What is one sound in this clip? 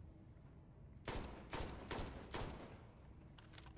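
A rifle fires several muffled shots.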